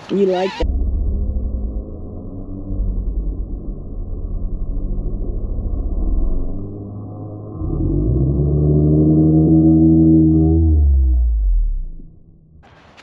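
A small drone's propellers buzz up close, the pitch rising and falling.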